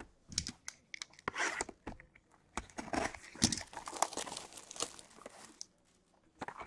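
Plastic wrapping rustles and crinkles as hands handle a box.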